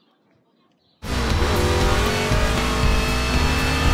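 A race car engine roars loudly.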